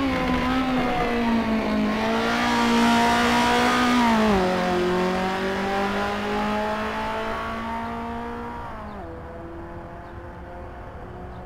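A racing car engine roars past at high revs, then fades into the distance as it shifts gears.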